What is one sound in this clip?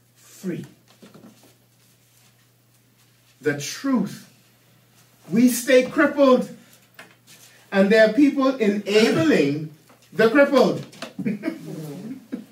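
An older man speaks calmly in pauses, heard through a microphone in a room.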